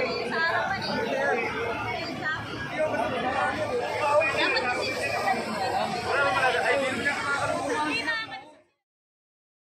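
A crowd of people talk and shout excitedly close by.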